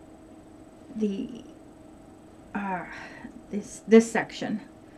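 An older woman speaks calmly and close by.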